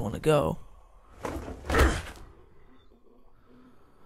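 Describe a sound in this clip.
Footsteps thud as a man jumps and lands on a roof.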